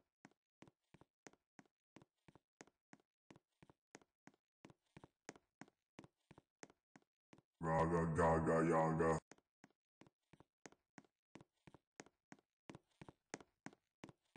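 Footsteps tap quickly and steadily on a hard surface.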